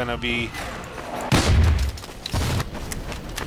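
A rocket launcher fires with a deep whoosh.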